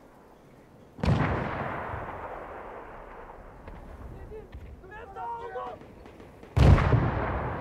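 A heavy tank cannon fires with a deep boom that rumbles away.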